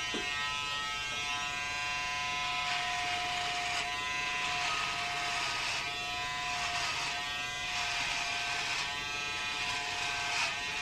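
Electric hair clippers buzz while trimming a beard.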